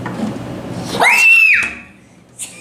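A young girl squeals excitedly close by.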